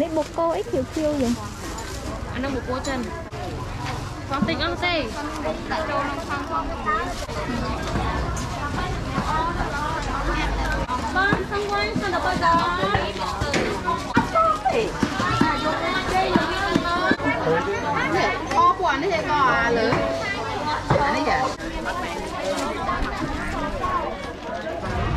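Many men and women chatter and call out all around in a busy outdoor crowd.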